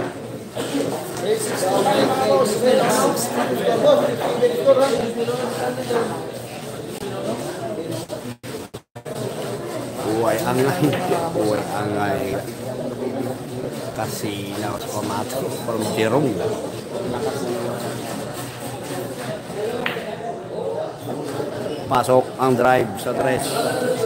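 A crowd of young men chatters and talks nearby.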